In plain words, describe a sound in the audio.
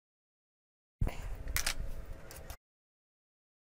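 Metal tools clink as they are picked up off a hard surface.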